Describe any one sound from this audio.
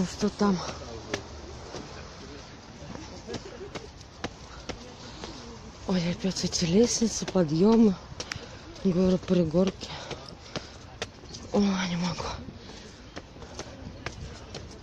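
Footsteps scuff and tap on stone steps.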